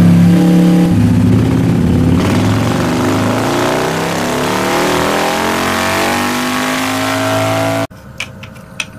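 A motorcycle engine revs up, its pitch rising steadily, then cuts off abruptly.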